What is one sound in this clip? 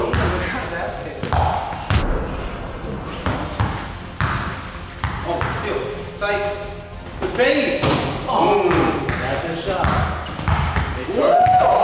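A basketball bounces on a padded floor.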